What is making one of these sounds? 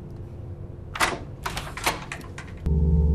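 A man knocks on a wooden door.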